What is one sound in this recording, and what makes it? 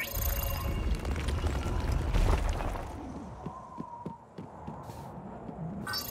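Light footsteps patter quickly across the ground.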